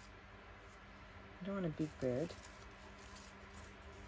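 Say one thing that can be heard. Paper rustles as it is handled.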